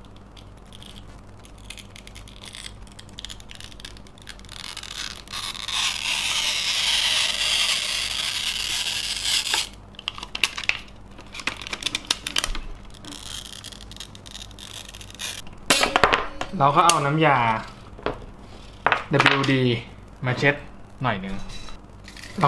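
Small parts click and rattle as they are handled.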